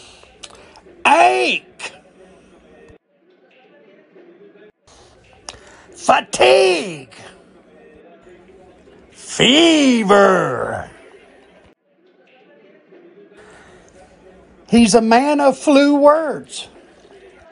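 A man speaks with animation in short, expressive bursts.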